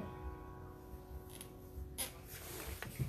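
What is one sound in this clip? A fiddle plays a sustained melody and stops.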